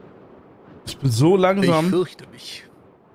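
A man exclaims loudly into a close microphone.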